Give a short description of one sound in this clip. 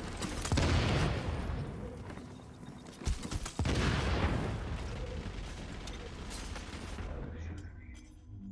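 Gunfire crackles in loud bursts.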